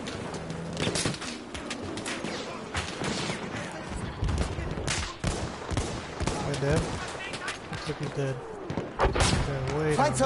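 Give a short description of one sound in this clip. A rifle fires in sharp single shots.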